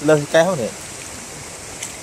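Water splashes softly as a hand dips into it.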